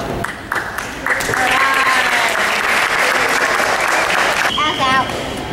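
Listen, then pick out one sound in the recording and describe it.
Young girls cheer and shout together in a large echoing gym.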